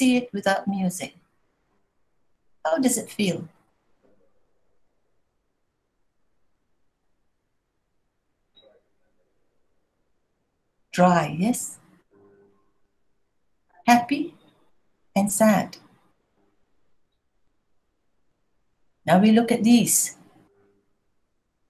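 A middle-aged woman speaks calmly in bursts over an online call, with long pauses.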